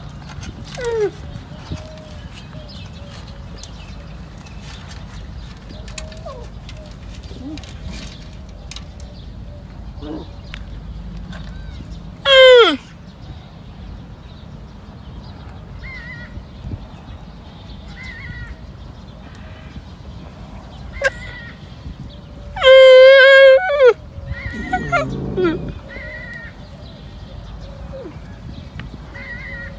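A calf suckles noisily.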